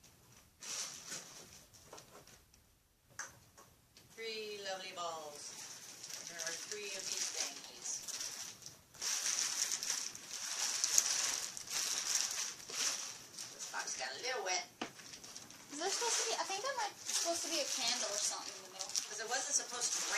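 Plastic bubble wrap crinkles and rustles as it is handled.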